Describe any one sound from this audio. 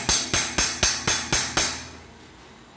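A small hammer taps rapidly on sheet metal, ringing sharply.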